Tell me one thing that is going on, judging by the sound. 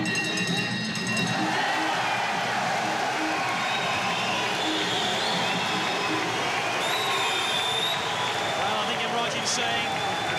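A large crowd cheers and shouts loudly throughout.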